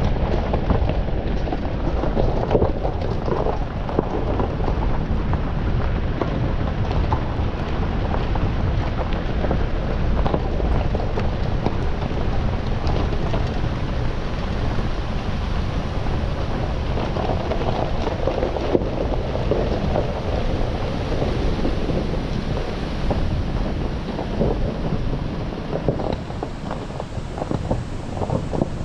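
Tyres crunch and rattle over gravel and leaves.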